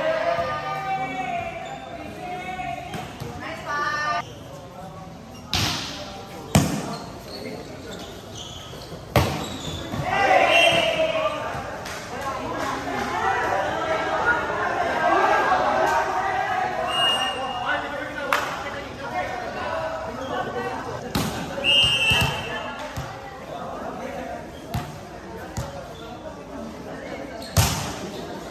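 Young people chatter and shout across an echoing open-sided court.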